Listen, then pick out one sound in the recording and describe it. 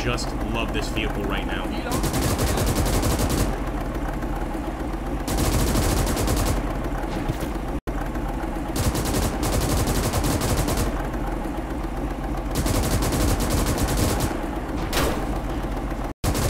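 An armoured car's engine rumbles low as it drives.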